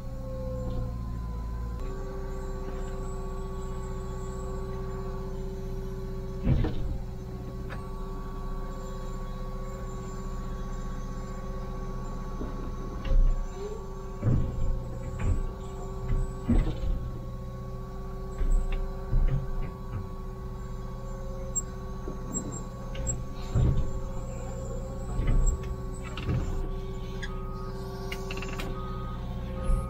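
An excavator engine hums steadily from inside the cab.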